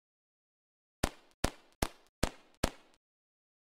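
Quick popping sounds ring out one after another as confetti bursts.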